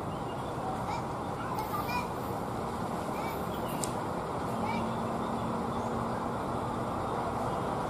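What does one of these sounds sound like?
A diesel locomotive rumbles steadily as it approaches slowly.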